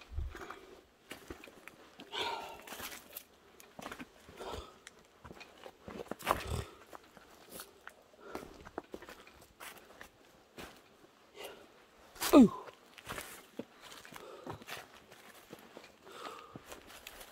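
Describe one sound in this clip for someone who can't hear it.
Footsteps crunch on dry leaves and stones.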